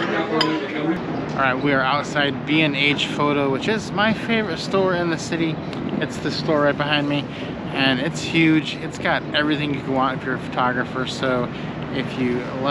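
A middle-aged man talks to the microphone close up, outdoors.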